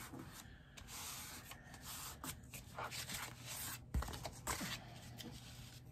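Cardboard rustles and taps as it is turned over on a mat.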